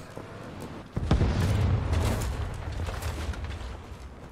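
An explosion booms nearby and rumbles away.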